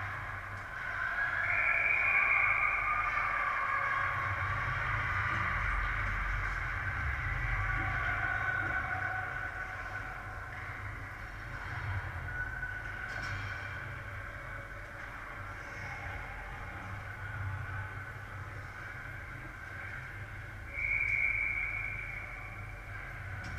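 Children shout across the ice.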